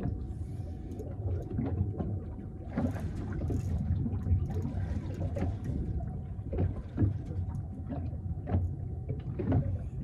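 A fishing reel clicks and whirs as line is reeled in.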